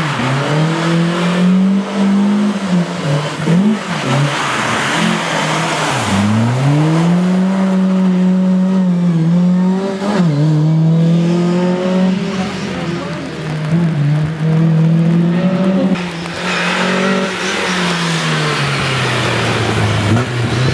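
A rally car engine roars and revs hard, rising and falling in pitch.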